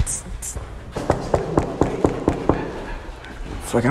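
Knocks sound on a door.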